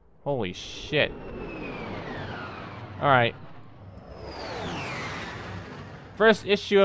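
A comet whooshes past with a falling rush.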